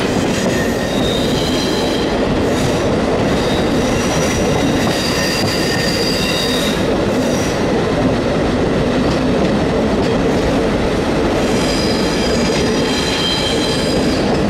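Train wheels squeal on curved rails.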